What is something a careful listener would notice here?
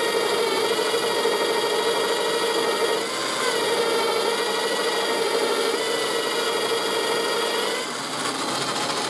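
A drill press whirs steadily as it bores into wood.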